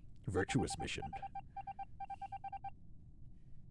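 An electronic game tone beeps in a quick steady pulse.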